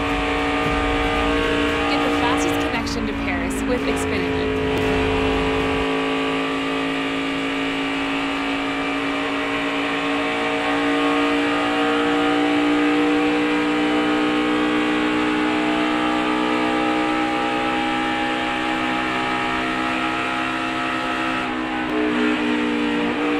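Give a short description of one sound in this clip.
A race car engine roars loudly and steadily at high speed, close by.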